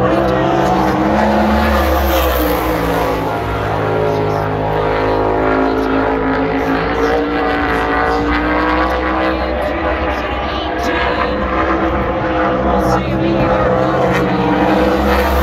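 Racing car engines roar loudly around a track outdoors.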